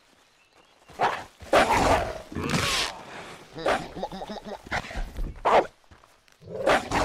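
A wolf snarls and growls while attacking.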